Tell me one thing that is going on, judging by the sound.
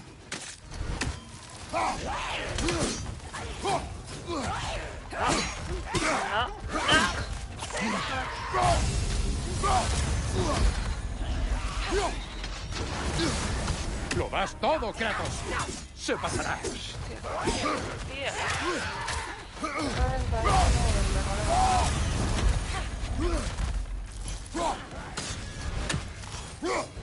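A warrior swings an axe and strikes enemies.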